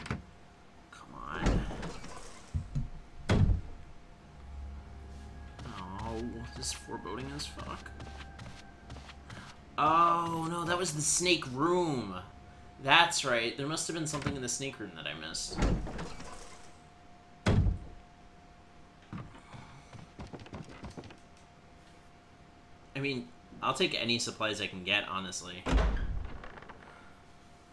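A heavy wooden door creaks slowly open.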